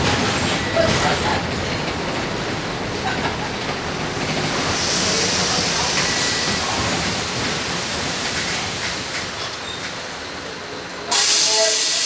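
A bus engine hums and rattles steadily while driving.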